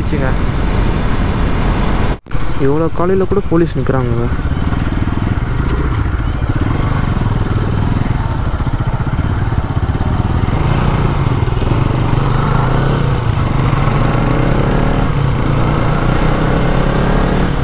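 A motorcycle engine hums steadily up close and rises and falls as the rider speeds up and slows down.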